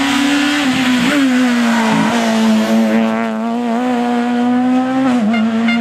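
A rally car engine dips in pitch briefly as it shifts gears.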